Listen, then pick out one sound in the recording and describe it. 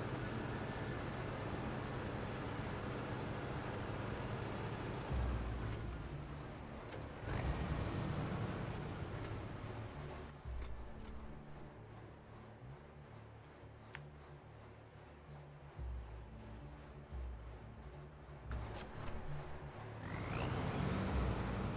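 A heavy truck engine rumbles and roars as the truck drives.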